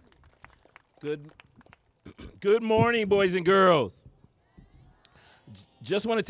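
A man speaks forcefully into a microphone outdoors.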